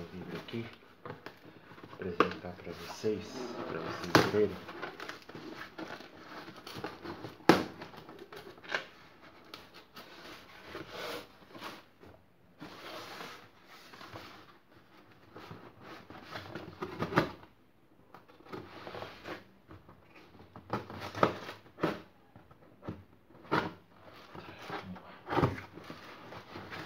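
A cardboard box rustles and thumps as it is handled.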